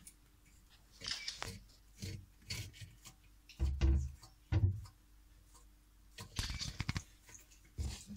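A lizard crunches and chews on a flower up close.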